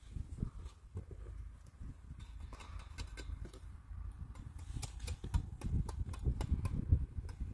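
A trowel scrapes and taps against concrete blocks.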